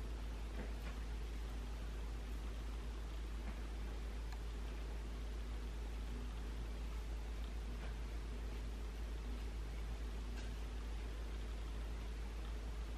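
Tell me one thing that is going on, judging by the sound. Fingers rustle through short hair, close by.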